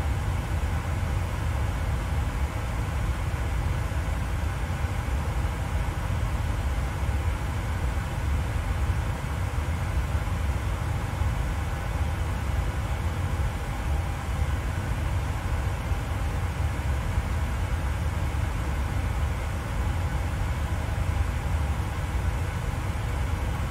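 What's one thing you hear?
Jet engines hum and rumble steadily at idle, heard from inside a cockpit.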